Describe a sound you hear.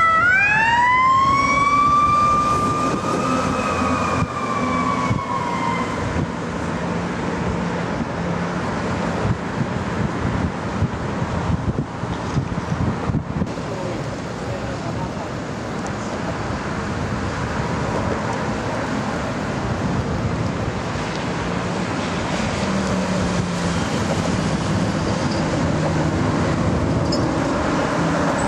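Traffic hums steadily on the road.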